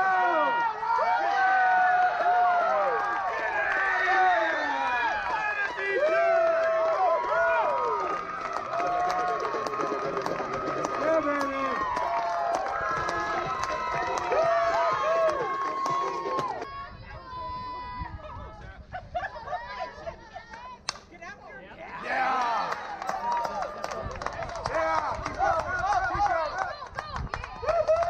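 Young women cheer and shout excitedly nearby, outdoors.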